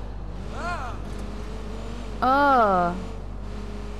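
A young woman speaks briefly with animation into a microphone.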